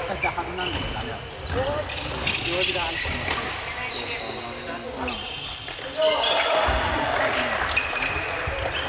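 Badminton rackets hit shuttlecocks with sharp pops in a large echoing hall.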